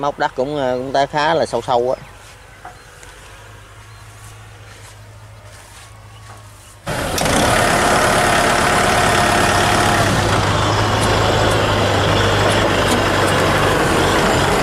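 A tractor's diesel engine runs under load.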